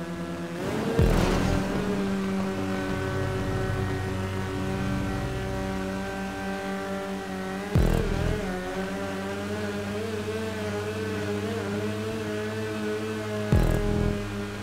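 A car thumps as it lands on a metal track.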